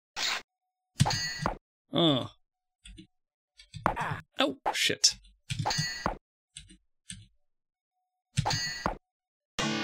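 Swords clash in a video game.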